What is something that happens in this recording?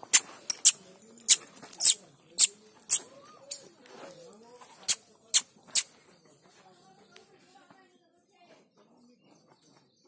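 A cow chews feed.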